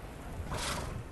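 A bear growls nearby.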